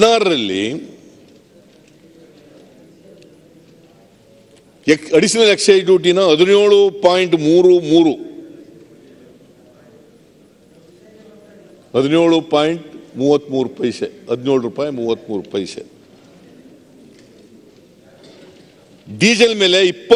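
An elderly man speaks into a microphone in bursts, with pauses, in a large echoing hall.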